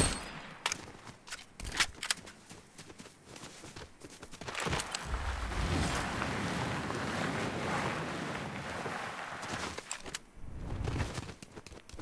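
Footsteps crunch through grass and on gravel.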